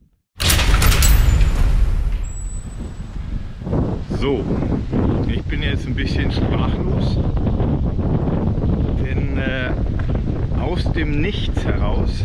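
Wind rumbles and blows against the microphone.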